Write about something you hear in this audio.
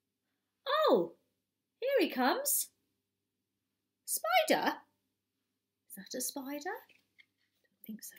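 A woman reads aloud expressively, close by, with rising and falling tone.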